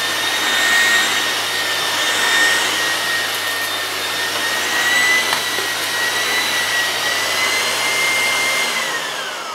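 A vacuum cleaner brush rubs back and forth over carpet.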